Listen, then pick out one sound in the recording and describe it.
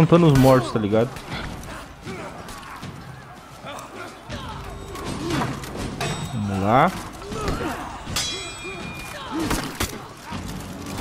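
Swords clash and strike in a close fight.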